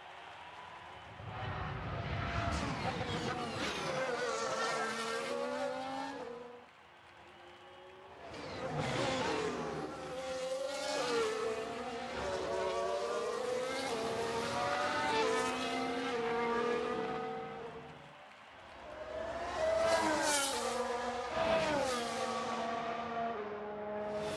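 A racing car engine screams past at high speed, rising and falling in pitch.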